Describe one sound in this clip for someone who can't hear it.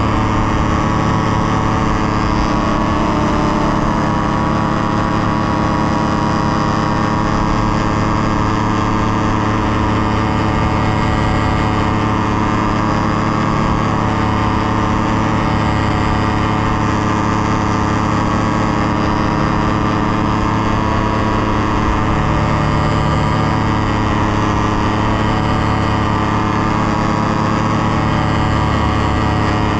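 A paramotor engine drones loudly and steadily close by.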